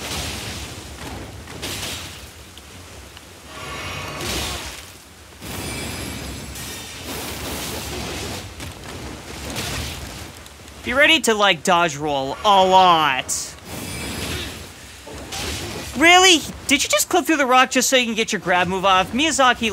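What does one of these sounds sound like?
Swords slash and clang in a fight.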